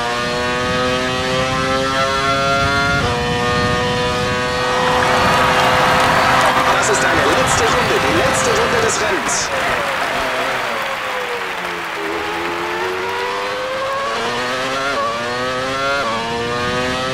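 A racing car engine screams at high revs and climbs in pitch through quick gear changes.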